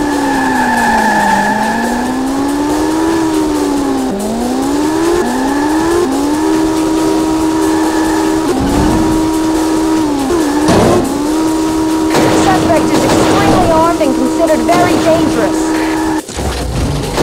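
A car engine hums and its pitch rises and falls as it speeds up and shifts gears.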